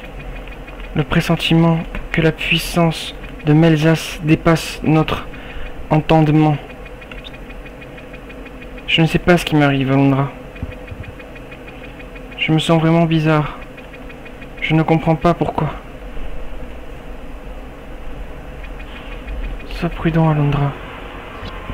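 A young man reads aloud with animation, close to a microphone.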